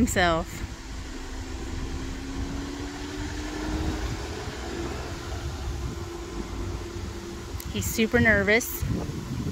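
A car's engine hums softly as the car pulls away and drives off down the street.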